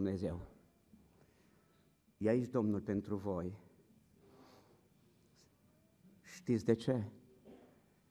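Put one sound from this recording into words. A middle-aged man speaks with emphasis into a microphone, in short bursts with pauses.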